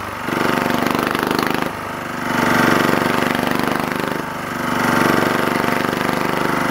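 A small petrol generator engine chugs steadily close by, surging and easing in waves.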